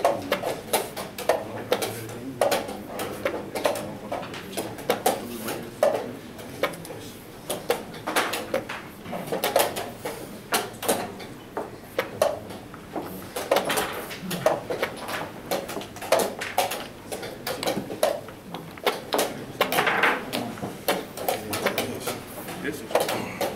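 Wooden chess pieces click and knock on boards.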